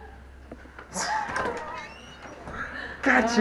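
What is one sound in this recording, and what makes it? A man talks loudly nearby in an echoing hallway.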